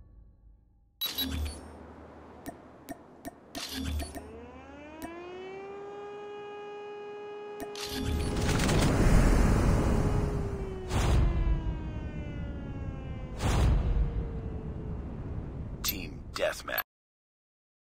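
Game music swells with a rising tone and booming hits.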